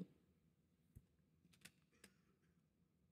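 Snooker balls knock together with soft clicks.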